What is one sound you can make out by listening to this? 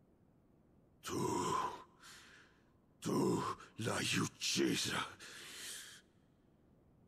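A man shouts angrily in a deep voice, close by.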